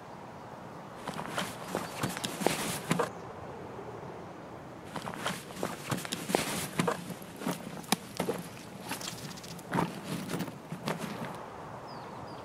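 Gear and packs rustle and clatter in quick bursts as items are moved.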